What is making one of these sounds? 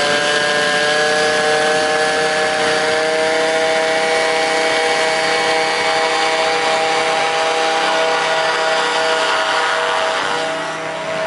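A paramotor engine drones loudly and steadily, slowly drawing away.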